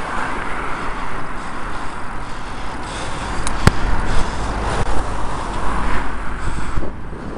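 A car passes close by.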